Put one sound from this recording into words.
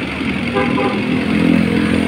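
A motorcycle passes by.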